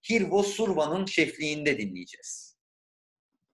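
A young man speaks calmly into a computer microphone.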